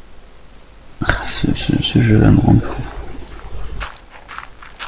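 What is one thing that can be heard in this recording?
A shovel digs into dirt with crunching scrapes.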